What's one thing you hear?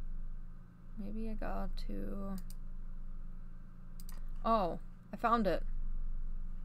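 A young woman speaks briefly and casually into a headset microphone, in short bursts.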